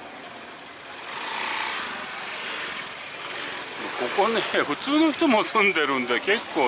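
A motor scooter rides past close by.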